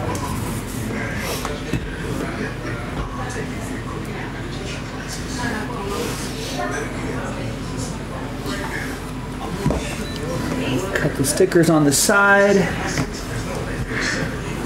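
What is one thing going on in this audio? A card slides and taps against a hard surface.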